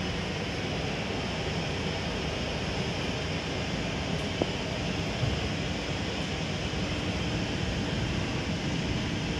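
A train rumbles steadily as it starts to roll out of a station.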